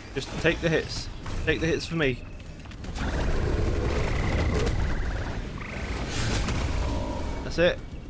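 Magic spells crackle and whoosh in a video game.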